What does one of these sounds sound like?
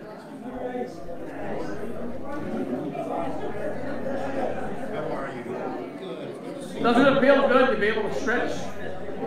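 Men and women chat quietly nearby in a room with a slight echo.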